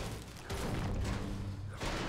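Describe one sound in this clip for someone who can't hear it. A pickaxe clangs against metal.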